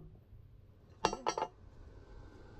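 A hammer strikes a metal plate.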